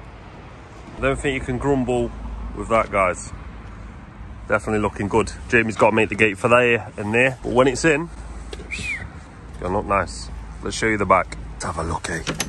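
A man speaks close by, calmly and with pauses.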